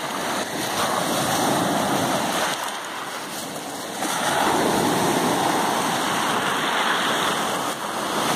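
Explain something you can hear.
Waves break and wash up over a pebble shore.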